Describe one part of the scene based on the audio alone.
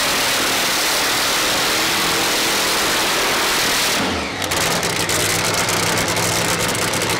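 A car engine roars loudly at high revs.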